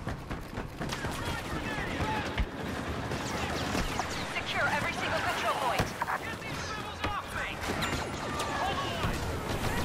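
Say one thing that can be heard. Blaster shots zap and crackle in rapid bursts.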